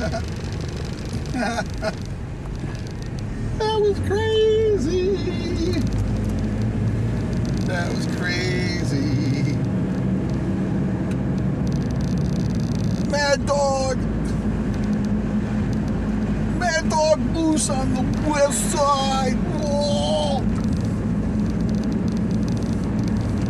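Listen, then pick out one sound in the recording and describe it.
A van engine rumbles steadily while driving.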